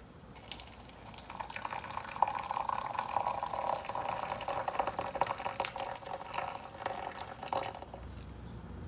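Hot water pours into a cup, splashing and gurgling.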